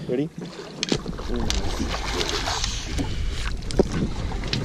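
A fish splashes at the water's surface in a landing net.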